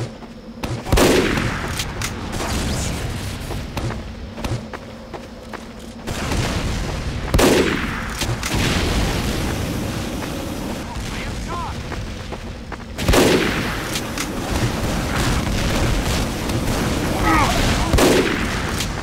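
A rifle fires loud sharp shots now and then.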